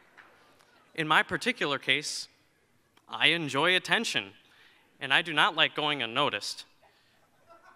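A young man speaks with animation through a microphone in a large hall.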